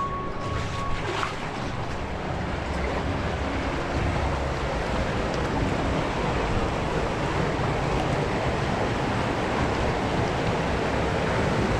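Water splashes and churns close by.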